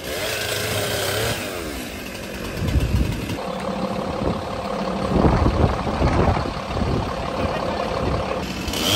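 Leafy branches rustle and crackle as they are pulled about.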